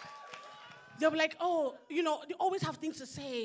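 A woman sings powerfully through a microphone.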